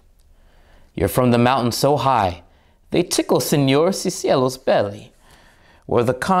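A man reads aloud expressively, close by.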